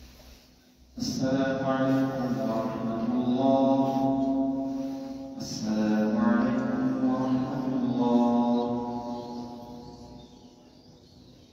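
A young man chants a melodic recitation through a microphone in a large echoing hall.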